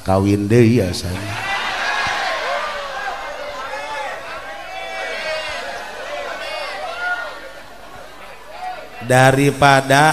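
A group of men laughs.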